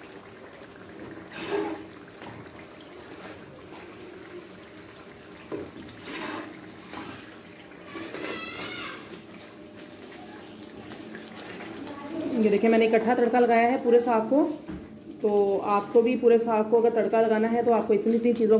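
Food sizzles gently in a frying pan.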